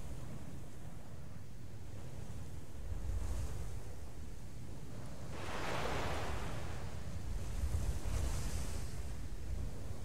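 Waves wash gently over open sea.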